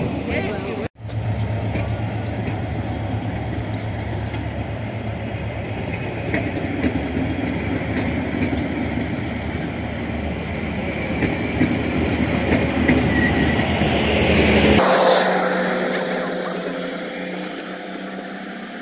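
A train rumbles along the tracks, heard from inside a carriage.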